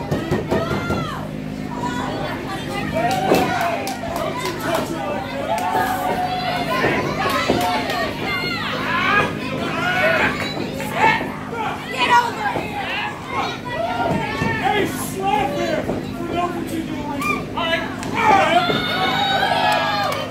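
A crowd of spectators shouts and cheers in an echoing indoor hall.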